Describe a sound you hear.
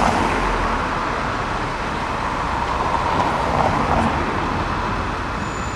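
A car drives past with a rushing hum.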